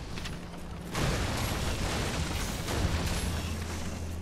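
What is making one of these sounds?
A wooden crate smashes apart and splinters crash down.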